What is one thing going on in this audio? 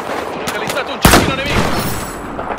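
A rifle fires a single loud, sharp shot that echoes briefly.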